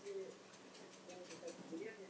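A cat's paws patter quickly across a wooden floor.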